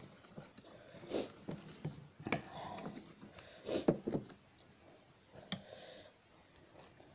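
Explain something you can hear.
A young woman chews and slurps noodles close by.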